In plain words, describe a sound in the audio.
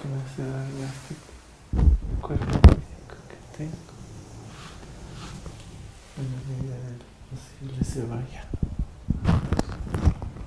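Hands rustle and knock against something close by.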